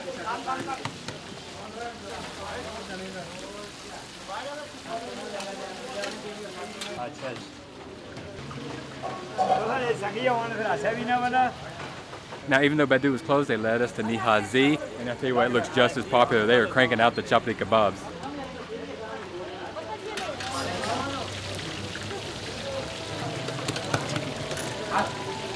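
Men's voices chatter in the background.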